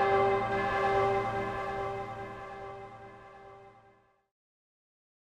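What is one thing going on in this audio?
A large bell tolls once and its ringing slowly fades away.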